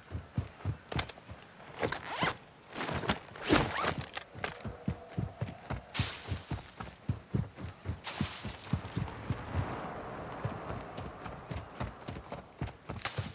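Footsteps thud quickly on dry ground.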